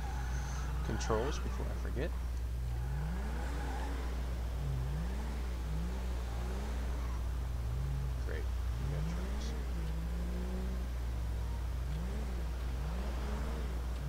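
A car engine revs up and down as the car drives away.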